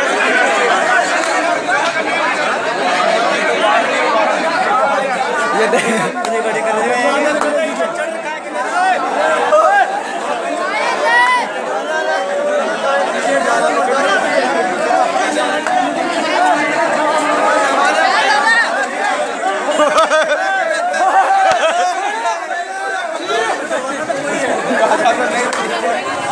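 A crowd of men talks and shouts loudly all around, close by.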